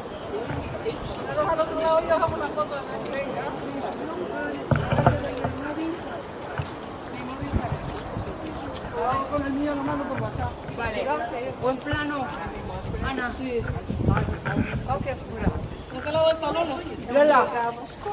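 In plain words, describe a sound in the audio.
Men and women chat nearby outdoors, with voices coming and going.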